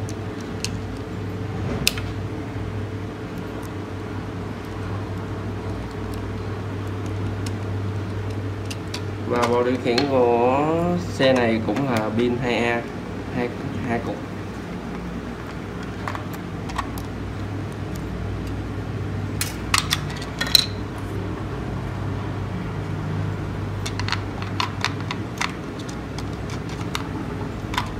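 Plastic parts click and tap as hands handle a small device.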